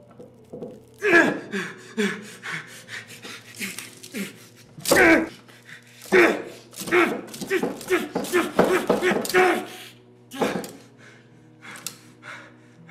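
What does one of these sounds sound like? A man groans and sobs in pain, close by.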